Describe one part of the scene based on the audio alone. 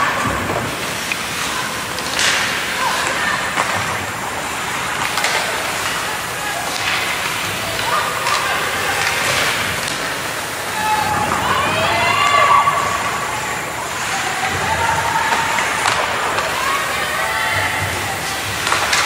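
Skates scrape and carve across the ice in a large echoing rink.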